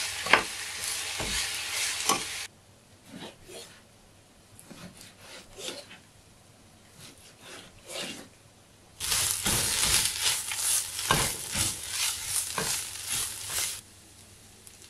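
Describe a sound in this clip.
Onions sizzle and hiss in a hot pan.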